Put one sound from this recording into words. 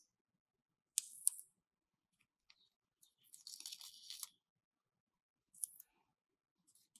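Adhesive bandages are pressed and rubbed onto skin.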